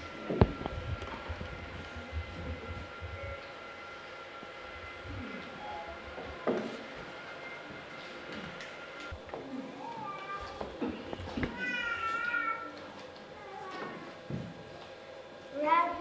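Children speak lines in a large echoing hall.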